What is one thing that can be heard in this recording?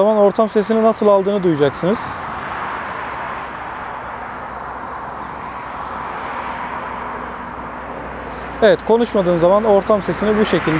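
A man speaks calmly and clearly into a clip-on microphone, close by.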